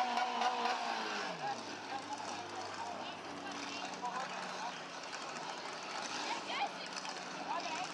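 A car engine revs and roars close by.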